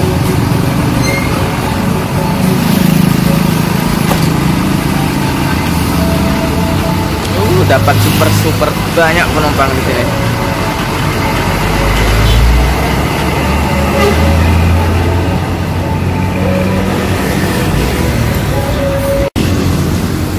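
A large bus engine rumbles close by as the bus pulls away.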